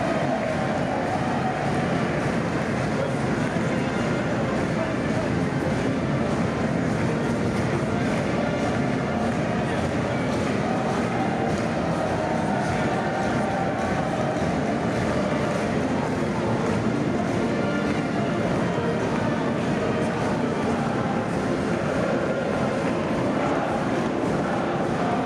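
A large crowd sings together loudly in a big echoing hall.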